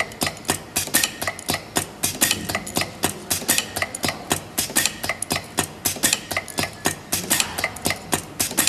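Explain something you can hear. A pneumatic machine hisses and clacks in a fast, steady rhythm.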